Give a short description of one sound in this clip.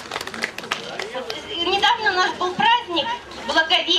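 A young woman speaks cheerfully through a microphone over loudspeakers.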